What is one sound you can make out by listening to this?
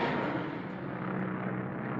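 Airplane propeller engines drone steadily.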